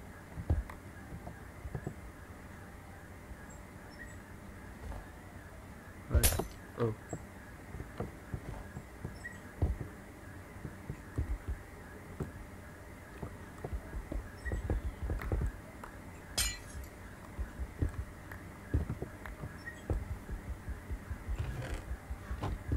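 A pickaxe chips at stone with short tapping knocks.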